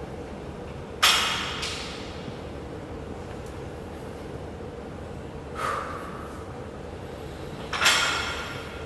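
A loaded barbell clanks against the floor.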